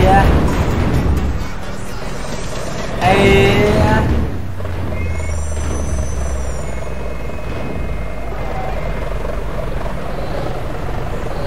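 A heavy bus engine rumbles steadily.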